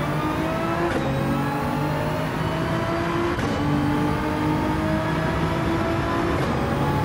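Gear changes snap sharply as the engine climbs.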